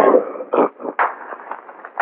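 A man claps his hands in rhythm.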